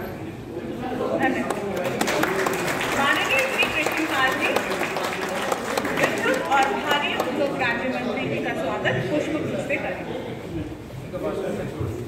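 An audience claps.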